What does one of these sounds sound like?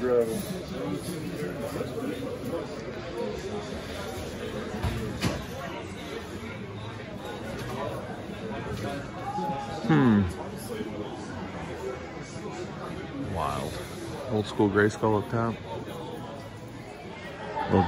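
People chatter in a busy indoor space.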